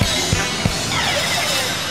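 A band plays an upbeat pop song with drums and electric guitar.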